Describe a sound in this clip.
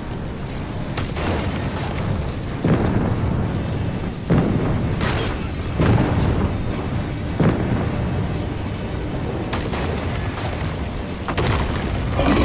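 Loud booming crashes strike now and then.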